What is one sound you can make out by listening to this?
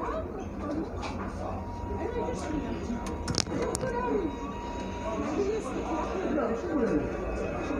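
Plastic parts of a phone click and rattle in the hands.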